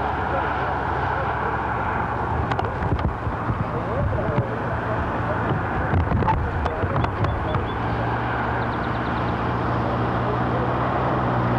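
A small motor hums as a vehicle drives along a road.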